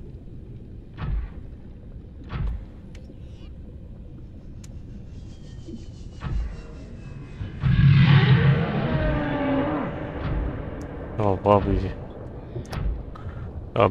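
A heavy mechanical suit thuds dully underwater.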